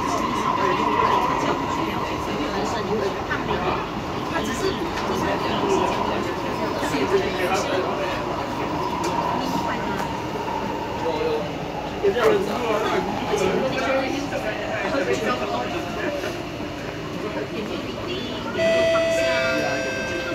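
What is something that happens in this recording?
Passengers murmur faintly inside the carriage.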